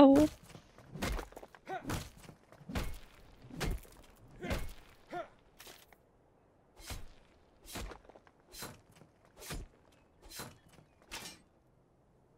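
A pickaxe strikes rock again and again at a steady pace.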